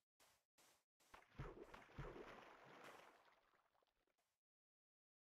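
Water splashes and rushes.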